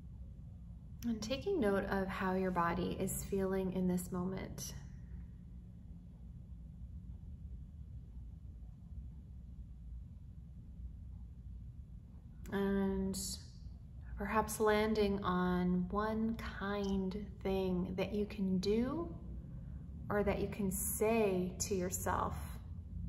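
A young woman speaks calmly and gently, close to the microphone.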